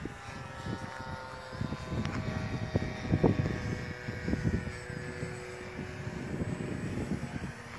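A model airplane's propeller whines as it flies overhead.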